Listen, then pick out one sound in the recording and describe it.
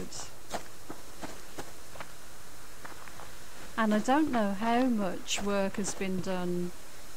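Footsteps swish through grass.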